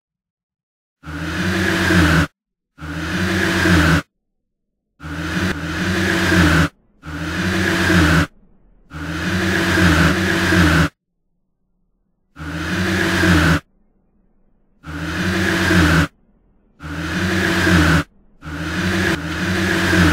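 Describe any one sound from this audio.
A box makes a wheezing, groaning sound that swells and cuts off again and again.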